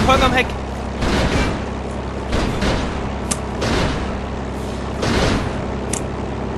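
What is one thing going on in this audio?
Machine guns fire in short bursts.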